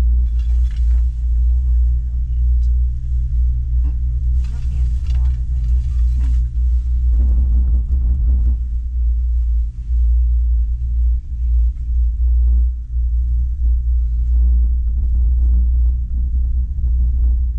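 Skis hiss and swish through deep powder snow.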